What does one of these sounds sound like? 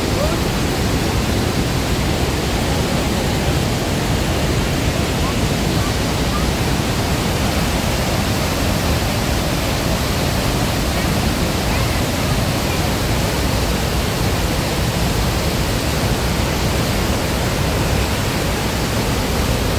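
A powerful waterfall roars and thunders steadily close by.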